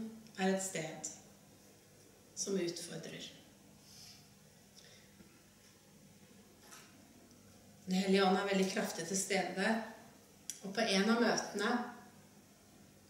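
A woman speaks calmly through a microphone in a room with some echo.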